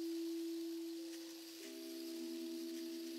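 A second bowl joins with a higher ringing tone near the end.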